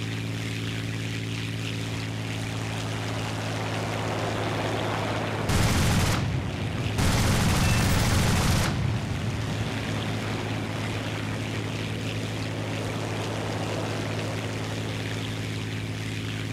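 A propeller engine drones steadily.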